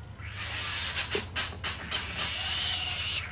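A bird flaps its wings in short bursts.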